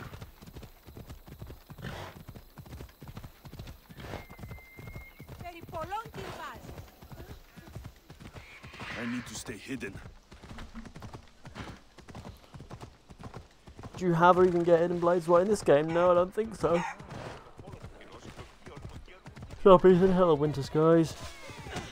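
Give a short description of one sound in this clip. A horse gallops steadily over a dirt path, hooves drumming.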